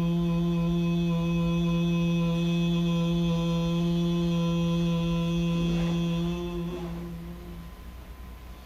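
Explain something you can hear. A man sings a long, steady low hum close by, then stops.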